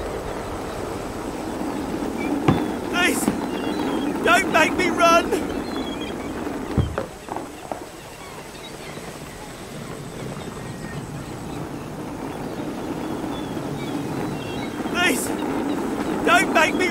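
Small plastic wheels roll and rattle over grass.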